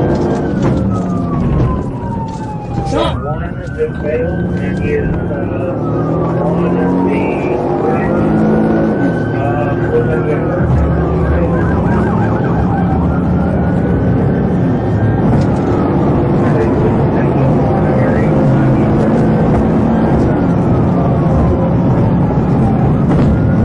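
A car drives at high speed with a roar of road noise.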